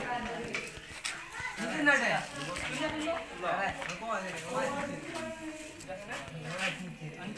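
Many boys chatter loudly nearby.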